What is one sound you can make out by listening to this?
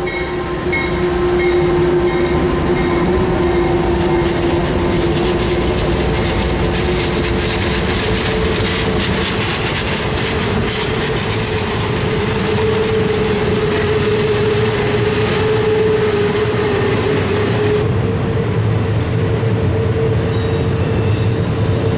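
Freight cars clatter and roll steadily along the rails.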